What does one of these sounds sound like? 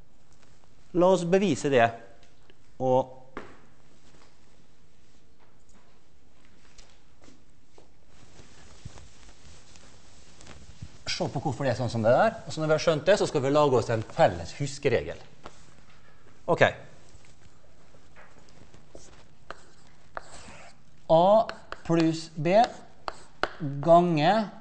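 A man lectures with animation in a large echoing hall, heard through a microphone.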